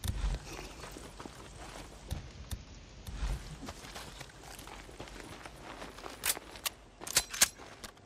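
Footsteps crunch through grass and brush.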